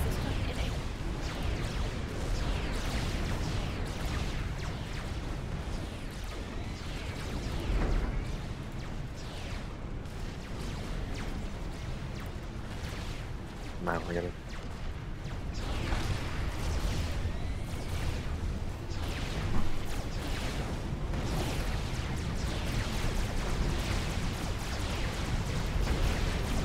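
Explosions and weapon fire rumble from a battle.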